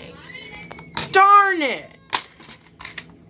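A plastic case snaps open.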